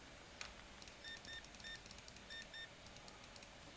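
A checkout scanner beeps several times.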